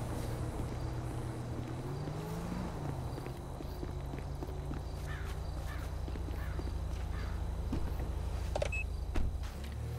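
Footsteps run over dirt and pavement.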